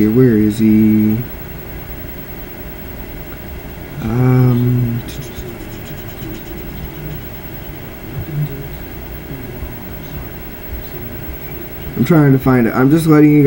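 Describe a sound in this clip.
A young man speaks in short bursts, close to a headset microphone.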